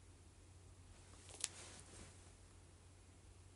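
A young woman sniffs and breathes through her nose.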